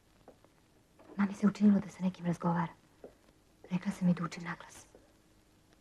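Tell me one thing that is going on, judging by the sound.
A young woman speaks in a low, tense voice.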